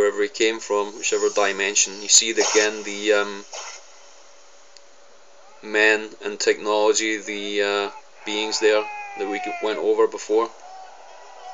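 A man's voice speaks dramatically through a loudspeaker.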